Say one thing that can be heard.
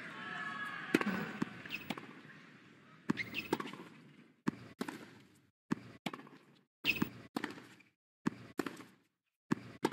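A tennis ball is struck sharply by rackets in a rally.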